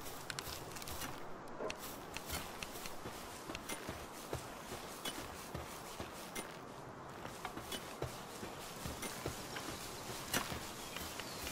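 Footsteps thud on grass and dirt.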